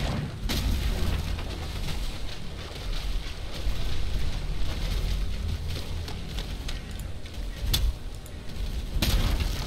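Footsteps splash and rustle through wet undergrowth.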